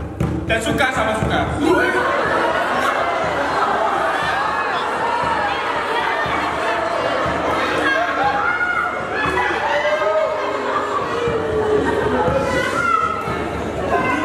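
Several young men and women talk over one another with animation in a large hall.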